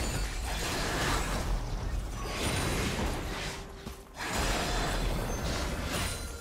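Spell effects whoosh and crackle in a game fight.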